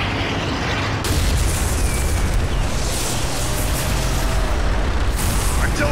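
A tank explodes with a deep boom.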